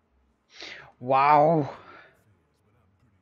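A young man speaks briefly into a nearby microphone.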